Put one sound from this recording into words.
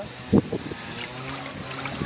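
Water pours into a metal pot.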